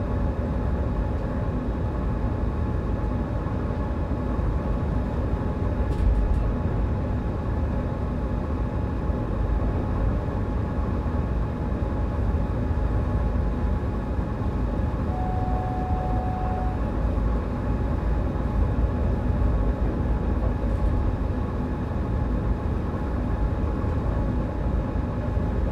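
A train's electric motor hums steadily.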